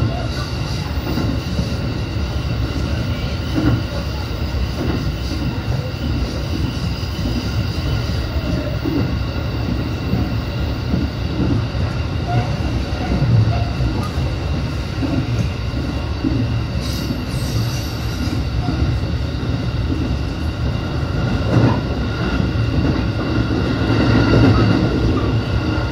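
An electric train hums along the tracks, heard from inside the cab.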